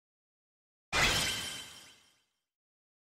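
A short victory chime rings out in a game.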